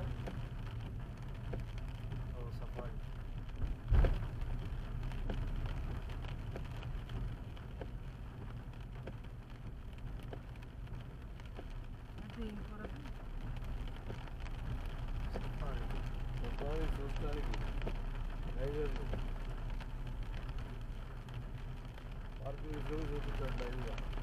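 Rain patters on the windscreen.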